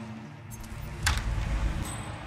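A metal door clicks open.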